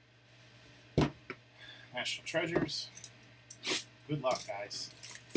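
A cardboard box knocks and scrapes as hands handle it.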